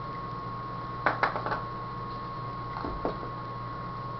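Plastic cups clatter and knock together.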